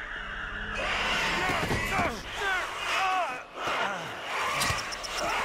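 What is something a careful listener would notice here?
A creature lets out shrill, wavering shrieks close by.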